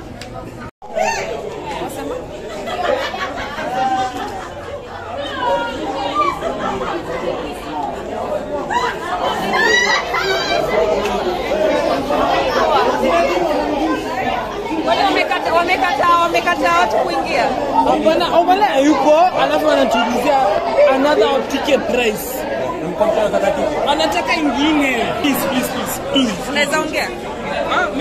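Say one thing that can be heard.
A crowd of men and women talk and shout all around, close by.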